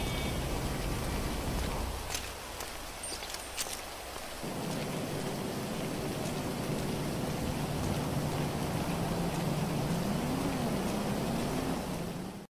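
Footsteps run across pavement.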